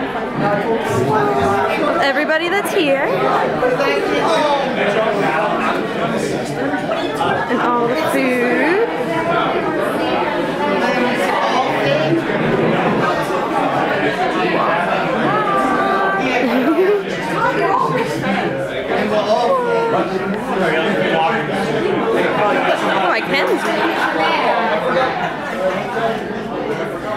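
A crowd of men and women chatters loudly all around in a large echoing hall.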